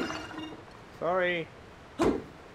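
A small robot gives a rising electronic warble.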